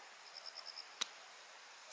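A golf club strikes sand with a sharp thud.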